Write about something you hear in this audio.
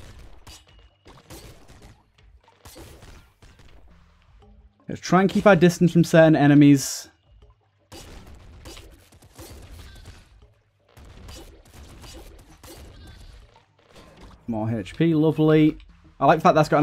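Small guns fire in quick bursts.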